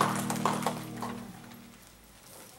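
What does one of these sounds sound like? A guitar chord rings out and fades.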